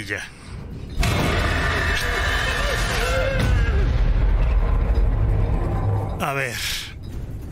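A creature lets out a deep, loud growl.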